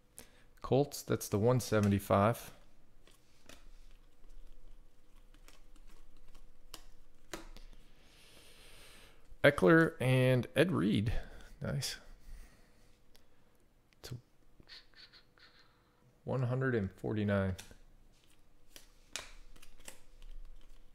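Trading cards flick and rustle as hands sort through a stack.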